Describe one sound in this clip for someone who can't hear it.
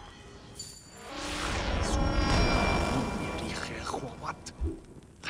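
A shimmering magical whoosh swells and slowly fades.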